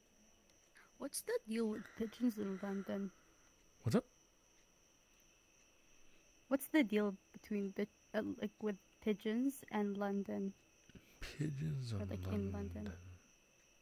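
A young woman speaks animatedly through a microphone.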